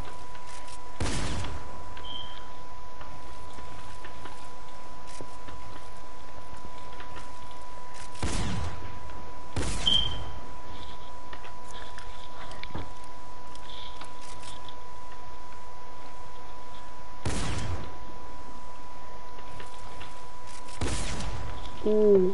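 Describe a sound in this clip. Heavy thuds sound as building pieces snap into place in a video game.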